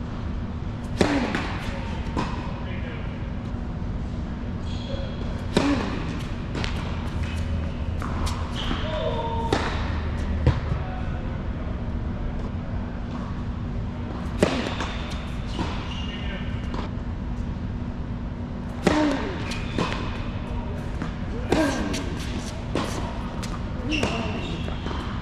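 A tennis ball is struck sharply by rackets, echoing in a large hall.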